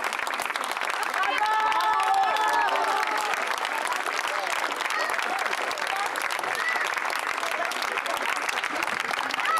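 An audience claps hands.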